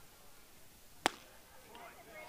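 A ball smacks into a catcher's mitt with a sharp pop.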